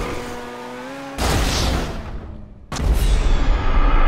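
A car crashes with a loud metallic bang.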